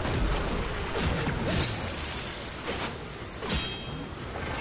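Fiery explosions burst loudly.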